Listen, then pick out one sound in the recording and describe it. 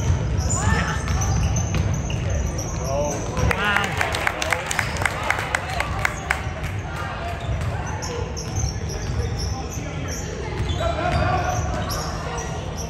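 Young players and spectators call out and shout across an echoing gym.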